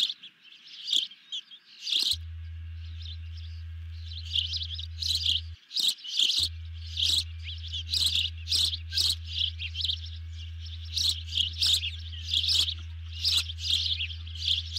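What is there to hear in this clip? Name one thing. Ospreys give high, sharp chirping calls over and over.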